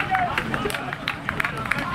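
A football is kicked toward the goal outdoors.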